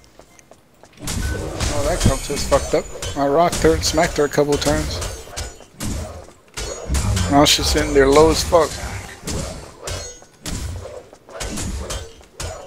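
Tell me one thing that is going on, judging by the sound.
Weapon blows and energy blasts crash and burst in quick bursts.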